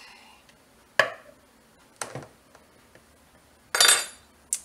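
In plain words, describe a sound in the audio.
A bowl knocks onto a wooden counter.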